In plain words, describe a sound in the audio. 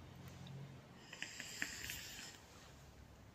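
A young man inhales with a soft hiss from a vape.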